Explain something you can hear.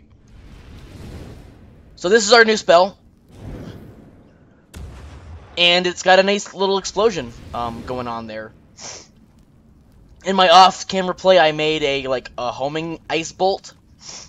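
A fire spell whooshes and crackles.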